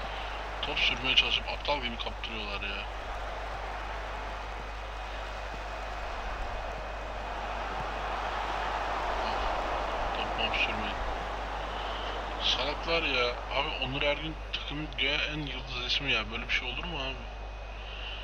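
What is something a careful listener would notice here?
A man talks calmly into a nearby microphone.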